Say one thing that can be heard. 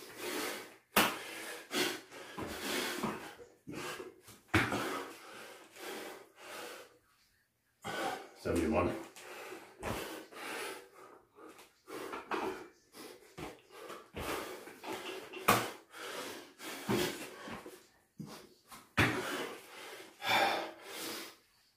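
Bare feet thump on a mat during jumping exercises.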